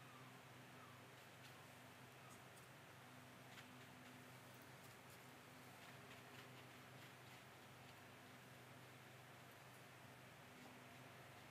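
A paintbrush dabs on watercolour paper.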